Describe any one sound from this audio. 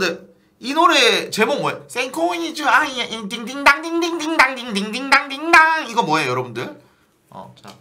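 A young man speaks loudly with animation into a microphone.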